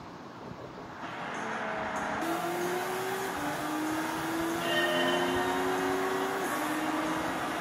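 A racing car engine whines and revs through a television speaker.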